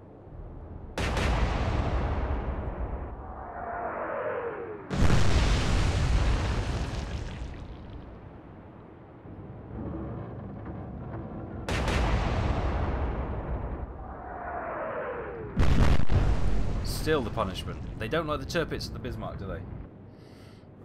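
Heavy naval guns fire with deep booming blasts.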